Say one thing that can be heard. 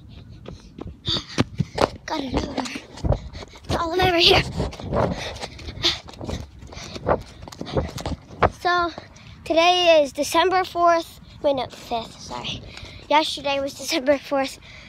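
Rustling and bumping against a phone microphone.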